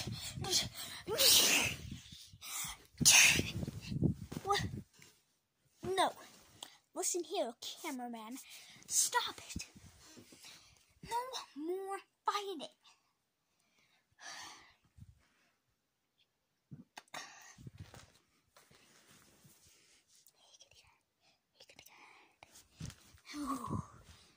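A young boy shouts and talks loudly close to a phone's microphone.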